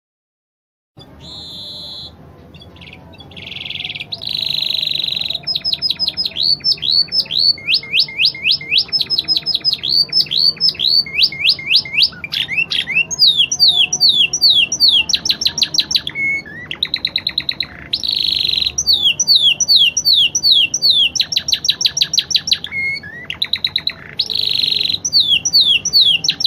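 A small songbird sings loud, rapid trills and chirps close by.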